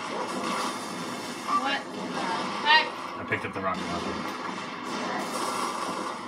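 A video game explosion booms.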